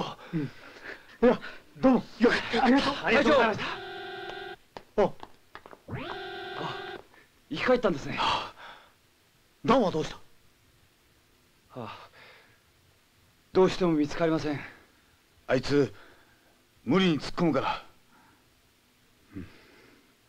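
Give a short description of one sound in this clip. Men talk in turns, with short pauses between them.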